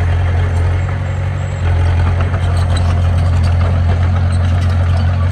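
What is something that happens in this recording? Bulldozer tracks clank and squeak as it moves.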